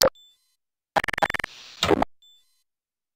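A weapon clatters and clicks as it is swapped and loaded.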